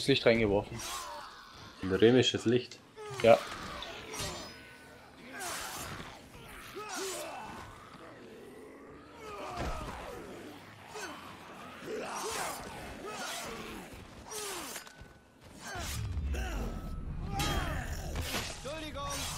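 Heavy blows thud and smack against bodies.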